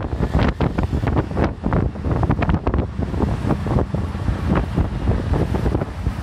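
A small three-wheeler engine rattles loudly while driving.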